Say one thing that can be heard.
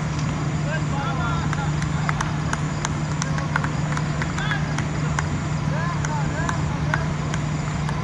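Men call out to each other outdoors, some way off.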